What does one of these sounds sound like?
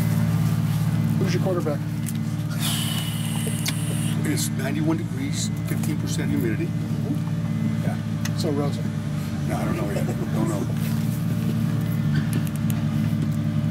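A middle-aged man speaks casually and up close into a microphone, outdoors.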